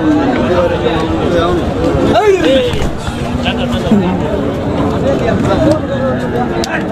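A crowd of men talk and shout loudly outdoors.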